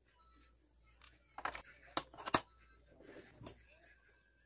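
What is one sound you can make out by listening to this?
A circuit board taps and clicks against metal parts close by.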